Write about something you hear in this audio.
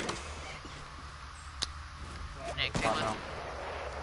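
A wooden door swings open.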